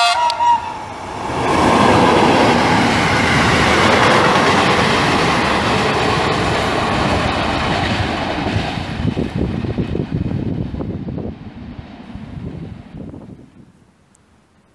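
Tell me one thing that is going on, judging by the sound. A freight train rushes past close by with a loud, rattling roar that slowly fades.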